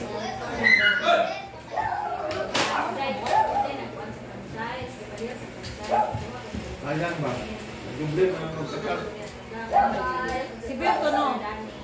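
Several women talk and laugh nearby in a lively group.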